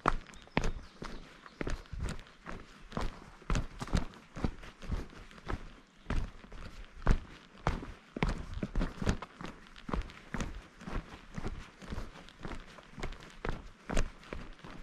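Footsteps crunch steadily on a dirt trail.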